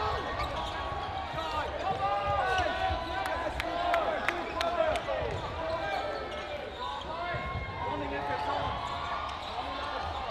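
Sneakers squeak sharply on a hard court in a large echoing hall.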